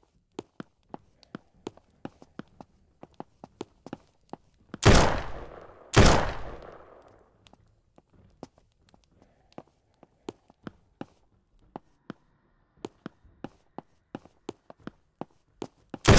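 Footsteps thud steadily as a character walks.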